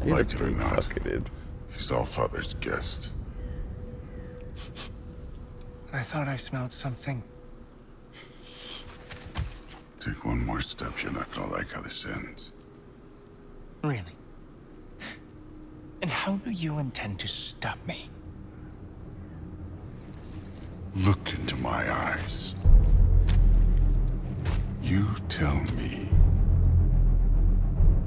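A deep-voiced man speaks with menace through a game's sound.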